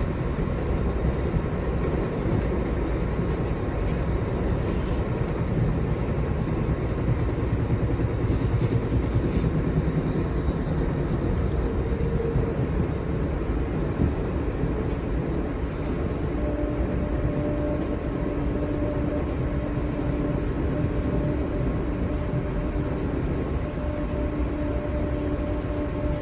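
Steel wheels hum and whine on the rails.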